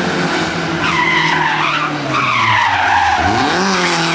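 Tyres squeal on tarmac as a rally car turns.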